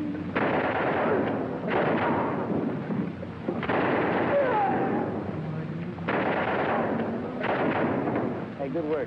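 Waves splash loudly against a boat's hull.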